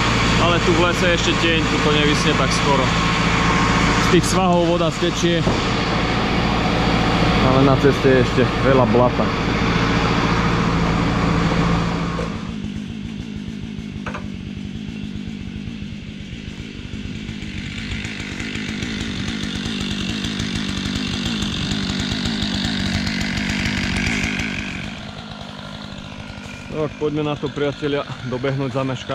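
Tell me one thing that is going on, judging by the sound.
A tractor engine idles with a steady low hum.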